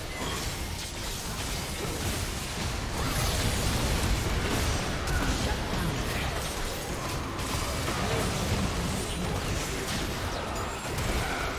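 Video game spell effects burst and crackle during a battle.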